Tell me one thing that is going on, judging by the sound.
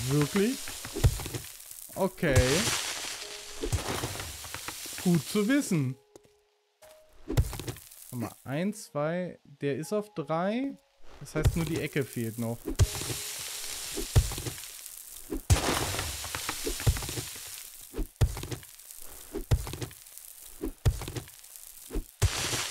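A stone axe strikes rock with repeated sharp knocks.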